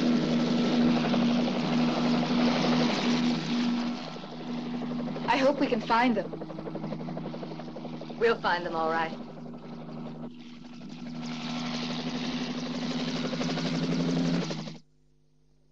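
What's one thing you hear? A helicopter engine roars loudly and steadily with thudding rotor blades.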